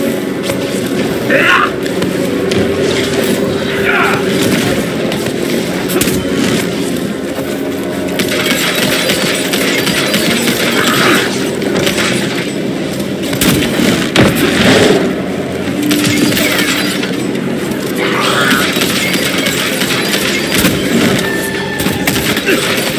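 Fiery blasts explode with a loud burst.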